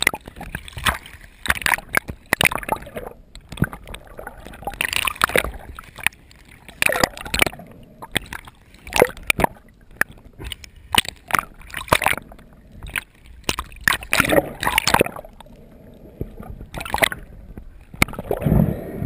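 Water splashes and sloshes close by.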